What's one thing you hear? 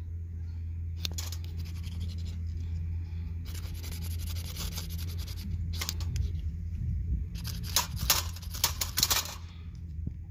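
A metal striker scrapes hard along a fire-starting rod in rasping bursts.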